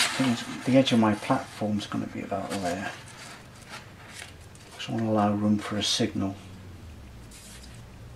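Paper rustles as a hand slides a sheet across a surface.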